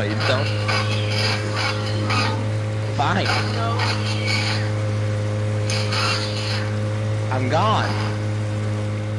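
An outboard motor drones steadily.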